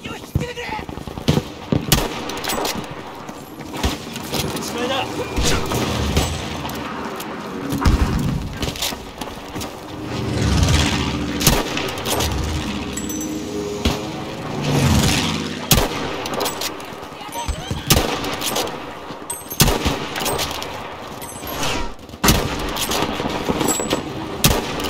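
Rifle shots crack sharply now and then.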